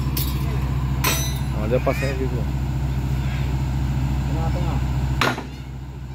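Men talk nearby outdoors.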